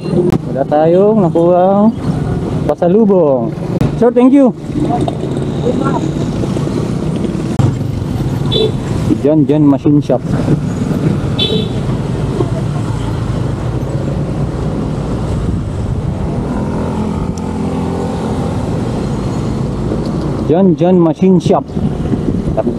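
A motorcycle engine revs up sharply through the gears.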